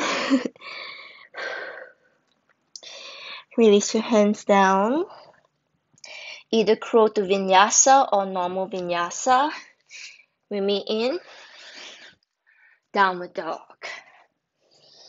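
A young woman speaks calmly and clearly, close to a microphone.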